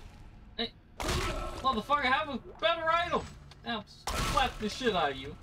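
Two heavy thuds strike hard.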